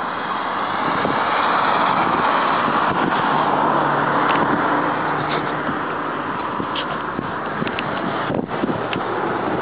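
Wind buffets the microphone loudly throughout.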